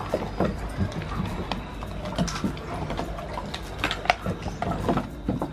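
A dog chews and gnaws wetly on raw meat close by.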